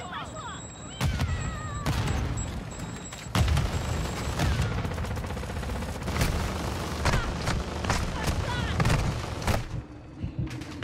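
A helicopter roars close by, its rotor blades thudding.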